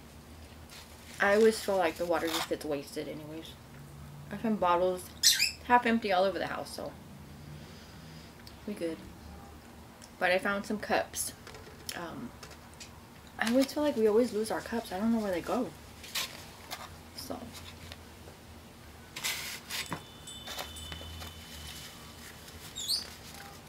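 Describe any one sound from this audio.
A foam food box creaks and rustles as it is handled.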